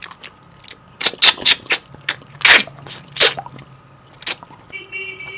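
A man slurps and sucks food off a bone.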